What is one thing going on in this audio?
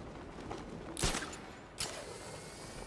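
A grappling line fires with a sharp whoosh.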